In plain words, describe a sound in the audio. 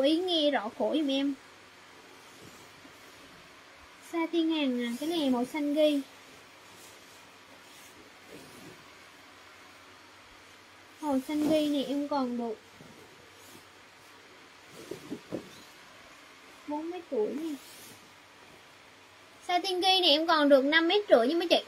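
Fabric rustles and flaps as a sheet is shaken.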